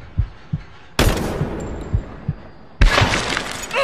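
A gun fires several sharp shots.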